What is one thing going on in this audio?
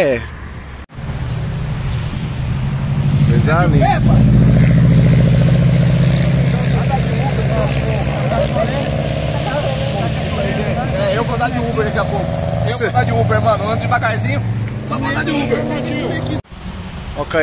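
A car engine revs loudly and rumbles as a car drives past.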